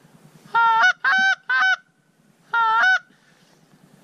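A man blows a goose call in loud, honking bursts.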